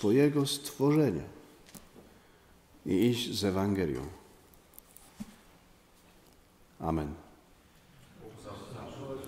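A middle-aged man speaks slowly and solemnly into a microphone, with pauses, in a slightly echoing room.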